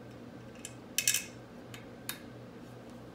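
Metal tools clink against metal parts.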